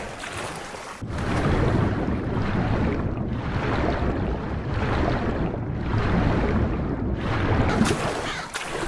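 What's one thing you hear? Water rushes and churns in a low muffled roar underwater.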